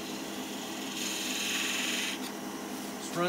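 A chisel scrapes against spinning wood.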